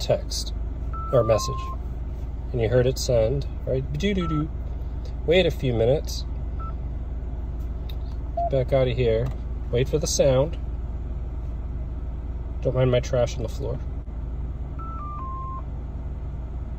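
A radio gives a short falling series of beeps.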